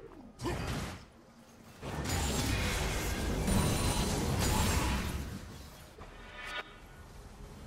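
Game battle effects burst, whoosh and crackle loudly.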